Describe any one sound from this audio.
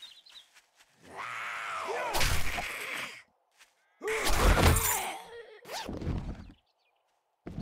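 A creature snarls and shrieks close by.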